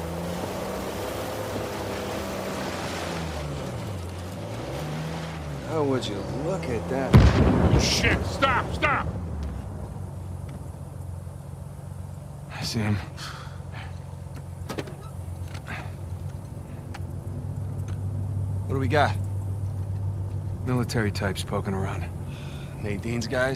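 A jeep engine rumbles and revs up and down.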